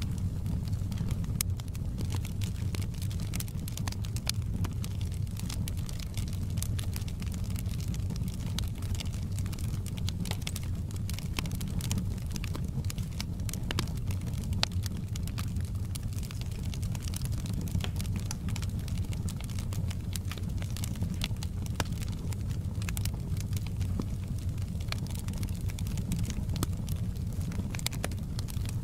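Logs crackle and pop in a burning fire.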